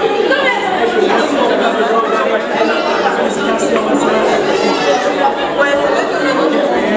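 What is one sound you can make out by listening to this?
A crowd of men and women talk and pray loudly at once in an echoing room.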